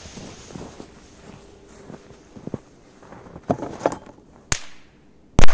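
A firecracker fuse fizzes softly.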